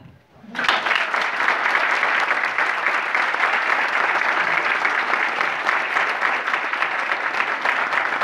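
A large audience applauds loudly and steadily in a room.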